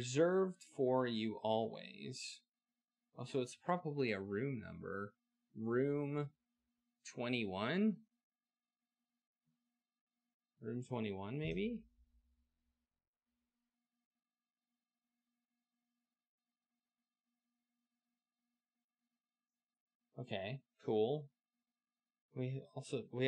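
A man talks close to a headset microphone, pausing now and then.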